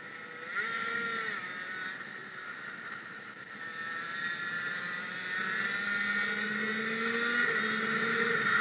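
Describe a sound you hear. A small engine whines loudly, its pitch rising and falling as it speeds up and slows down.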